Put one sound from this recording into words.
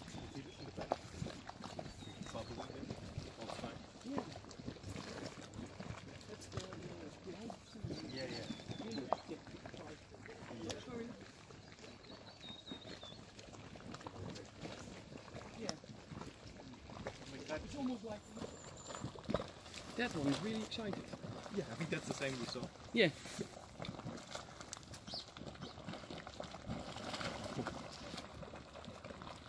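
Hot mud bubbles and plops.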